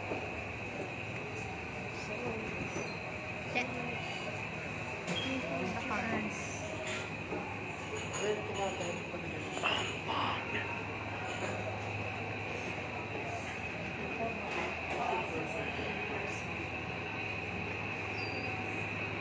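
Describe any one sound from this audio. Many people chatter in a busy indoor room.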